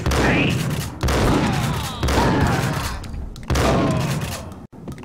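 A shotgun is pumped between shots.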